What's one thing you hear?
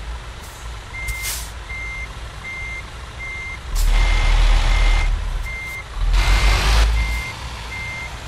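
A truck's reversing alarm beeps steadily.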